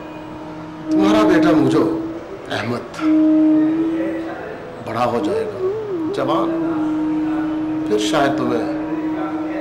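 A man speaks with emotion close by.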